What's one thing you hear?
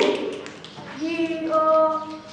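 A boy speaks loudly and clearly.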